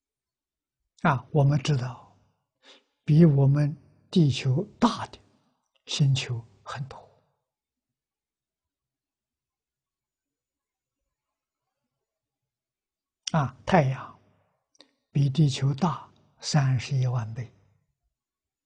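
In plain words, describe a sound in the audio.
An elderly man speaks calmly with long pauses, close to a microphone.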